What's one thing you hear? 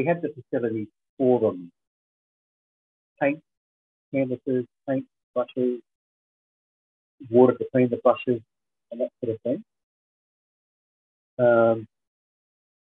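A middle-aged man speaks calmly in bursts through an online call.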